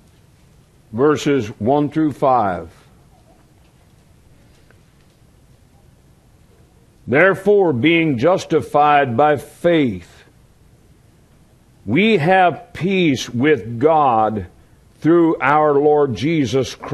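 A man speaks calmly into a microphone in bursts with long pauses.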